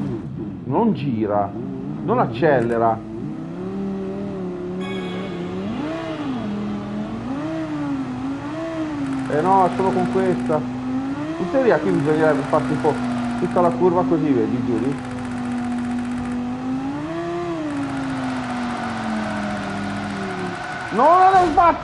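A racing car engine drones and rises and falls in pitch as it shifts gears.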